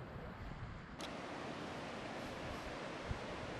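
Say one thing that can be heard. Surf foams and rushes close by.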